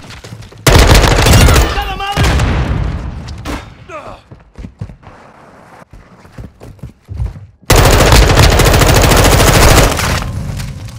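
A rapid burst of automatic gunfire rattles loudly, then stops.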